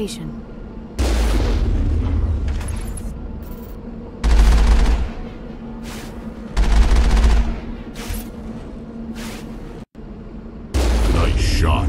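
A cannon fires with deep, heavy booms.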